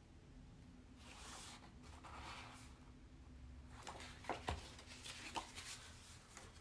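Paper cards rustle and shuffle in hands.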